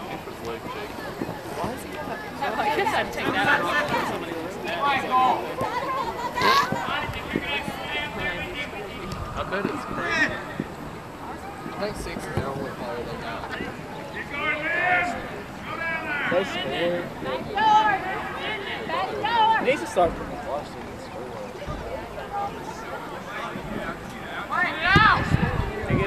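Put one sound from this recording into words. Young men shout and call out across a playing field outdoors.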